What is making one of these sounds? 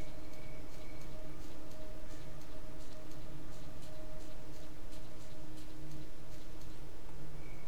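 A handheld detector beeps and clicks steadily.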